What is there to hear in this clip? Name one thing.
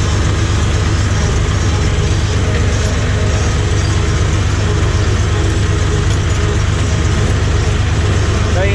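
A tractor cab rattles as it drives over grass.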